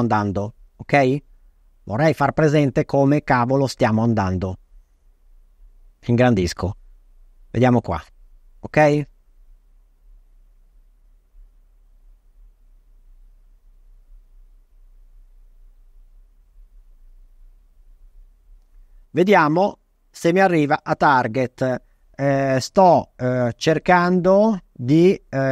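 A man talks calmly into a close microphone.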